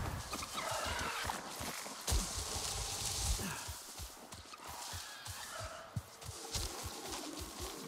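Leafy plants rustle as they brush past close by.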